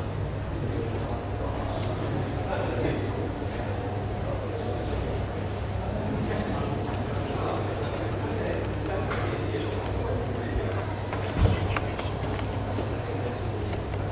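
A crowd murmurs in the background of a large room.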